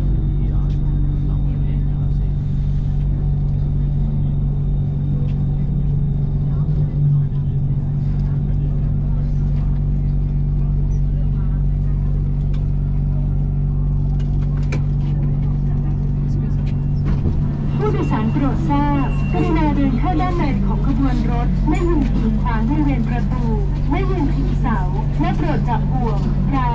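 A train rumbles and hums as it slows into a stop.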